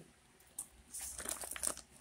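A hand rustles a plastic sack.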